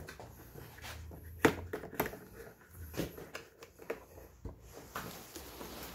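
A ratchet clicks as a bolt is tightened.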